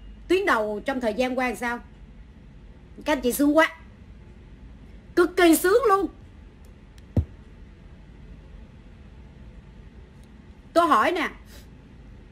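A woman speaks with animation in short bursts, close to a microphone.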